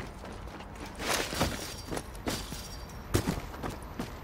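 A person vaults over a fence and lands with a thud.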